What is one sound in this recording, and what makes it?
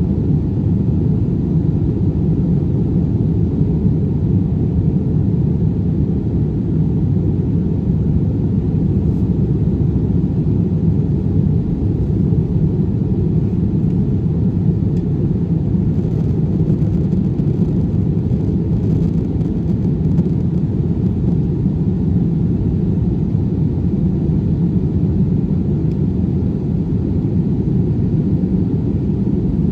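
A jet airliner's engines roar in a steady, deep drone, heard from inside the cabin.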